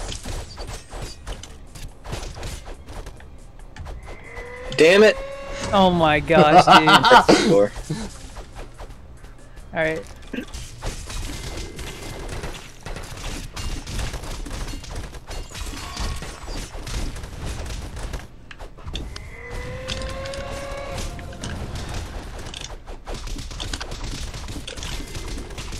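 Cartoonish combat sounds clash and burst rapidly.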